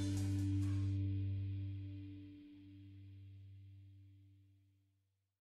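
A band's electric guitars ring out in a final chord and slowly fade away.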